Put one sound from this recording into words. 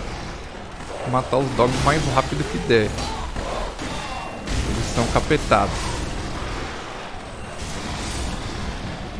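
Swords clash and strike.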